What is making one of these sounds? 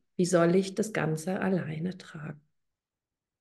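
A middle-aged woman speaks calmly into a microphone over an online call.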